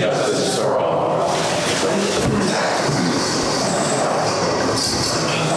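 Chairs scrape and clatter as people sit down.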